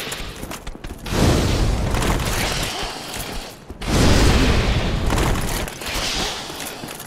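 A fireball bursts with a loud whoosh and roar.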